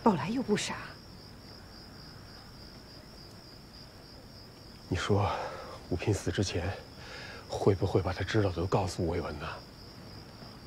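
A woman speaks quietly and tensely nearby.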